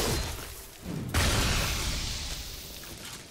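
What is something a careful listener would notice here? A puff of smoke bursts with a hiss.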